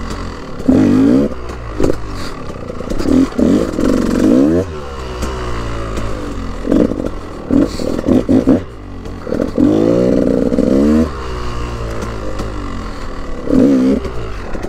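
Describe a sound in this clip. A dirt bike engine revs up and down sharply, close by.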